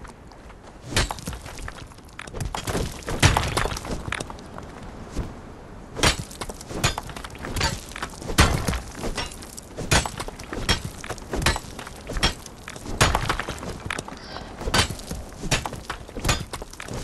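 A pickaxe strikes rock again and again with sharp knocks.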